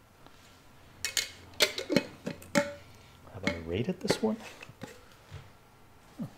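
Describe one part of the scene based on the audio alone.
A glass jar clinks and its lid rattles as it is handled.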